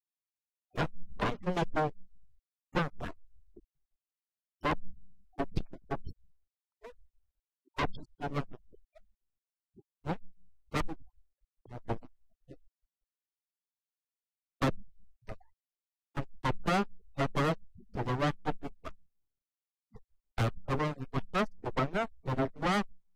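A man speaks with animation through a microphone to an audience.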